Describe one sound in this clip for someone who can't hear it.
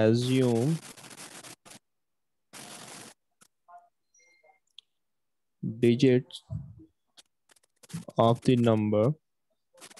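A young man speaks calmly and explains close to a microphone.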